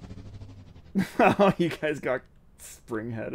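A man laughs close to a microphone.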